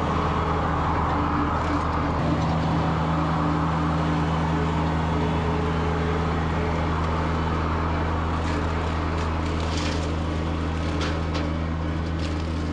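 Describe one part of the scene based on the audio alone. A rotary mower cuts through tall grass and brush.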